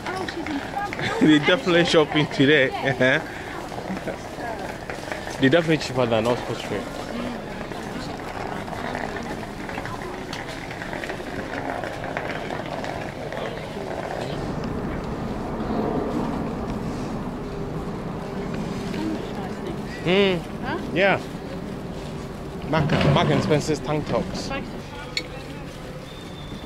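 A busy crowd murmurs and chatters outdoors.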